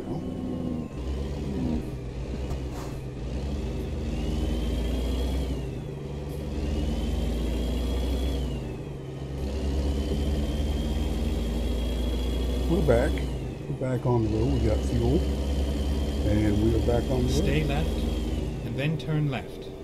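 A truck engine rumbles and revs up through its gears.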